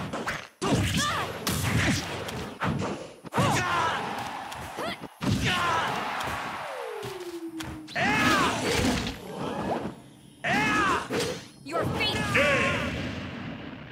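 Blows and sword slashes strike in quick bursts.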